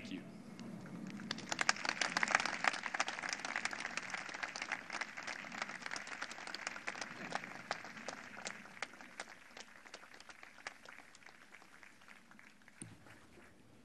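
A crowd applauds loudly, then the applause slowly fades.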